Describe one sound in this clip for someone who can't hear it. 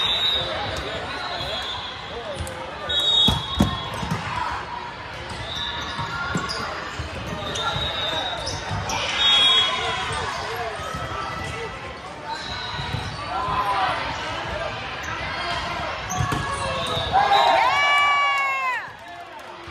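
Shoes squeak sharply on a hardwood court in a large echoing hall.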